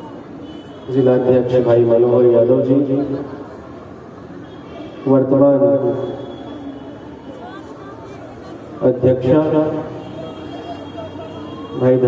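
A man speaks with animation through a loudspeaker outdoors, his voice echoing.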